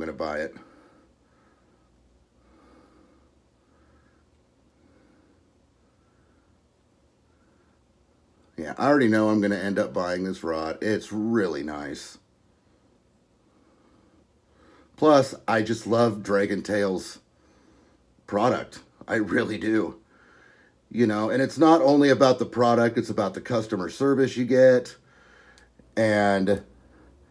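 A man talks calmly and close by, pausing between phrases.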